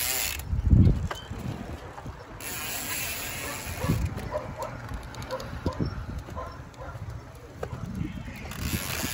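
Bicycle tyres roll over asphalt.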